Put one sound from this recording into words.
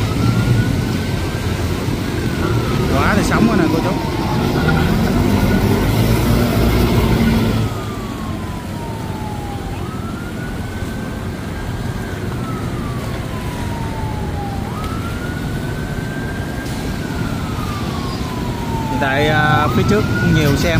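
Water splashes under wheels driving through a flooded street.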